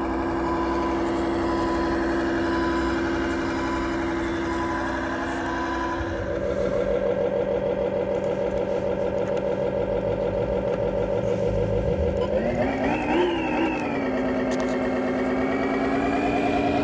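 A simulated diesel truck engine hums from a small loudspeaker on a model truck.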